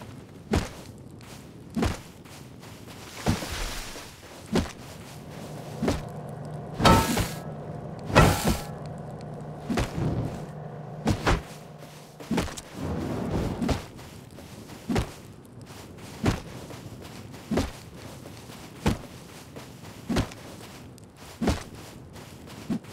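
A rock strikes a tree trunk with repeated dull knocks.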